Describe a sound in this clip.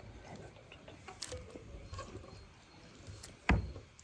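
A knife slices through tomatoes on a wooden board.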